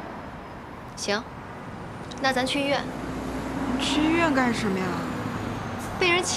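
A young woman speaks quietly and hesitantly nearby.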